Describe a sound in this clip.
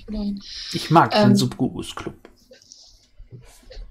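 A young woman talks over an online call.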